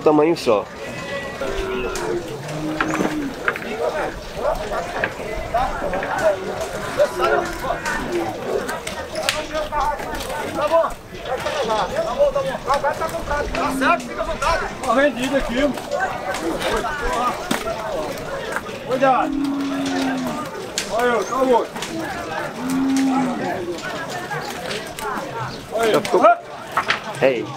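Men talk and call out outdoors.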